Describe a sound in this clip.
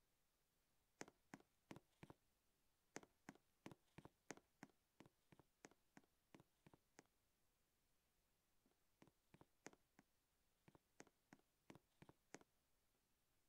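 A game character's footsteps patter quickly.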